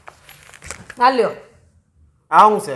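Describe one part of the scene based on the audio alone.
A young woman speaks nearby with animation.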